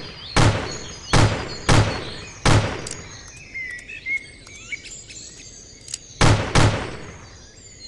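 Revolver shots fire loudly, several in quick succession.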